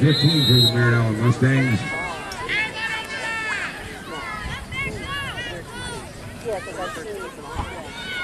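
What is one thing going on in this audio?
Young players and spectators shout and cheer across an open field outdoors.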